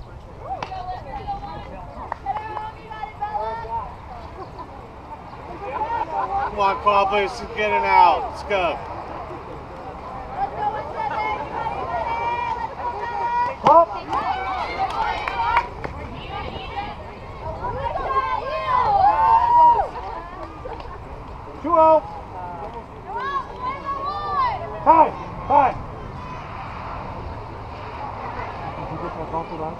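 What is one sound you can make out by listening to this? Young women cheer and chant loudly outdoors.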